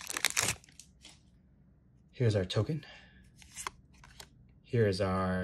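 Playing cards slide and flick softly in a hand.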